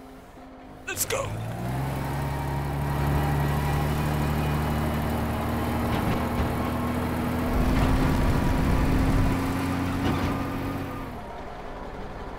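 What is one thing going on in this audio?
A heavy truck engine rumbles and revs steadily.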